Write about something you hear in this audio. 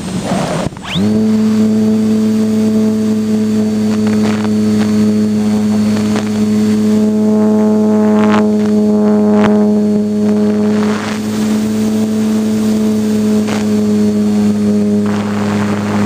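A small propeller motor hums steadily at a high pitch.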